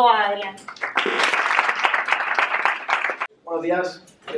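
An audience claps and applauds in a room.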